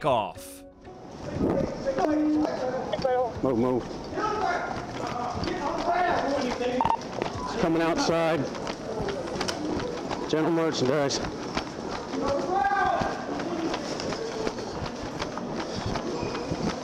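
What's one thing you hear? Footsteps run fast across a hard floor.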